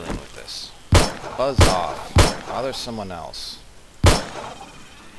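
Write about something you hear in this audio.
A pistol fires several sharp, loud shots.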